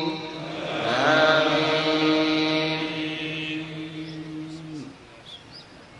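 A large crowd of men chants in unison with a long, drawn-out note.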